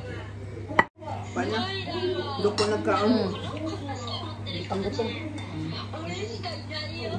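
Several women chat and laugh close by.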